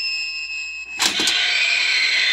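A toaster pops up with a sharp clunk.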